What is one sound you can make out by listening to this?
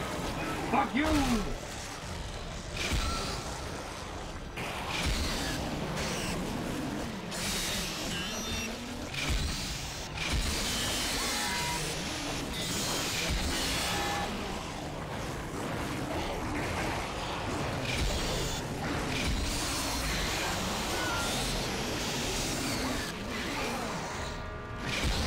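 A weapon fires sharp bursts again and again.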